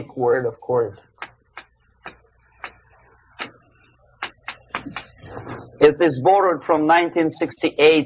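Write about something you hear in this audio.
An elderly man lectures with animation.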